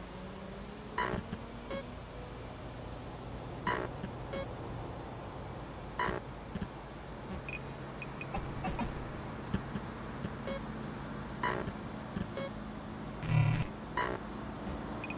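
Short electronic menu blips sound as pages change.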